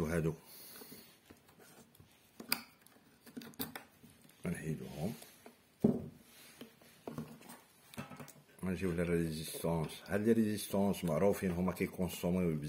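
Wires rustle and tap softly as hands handle them.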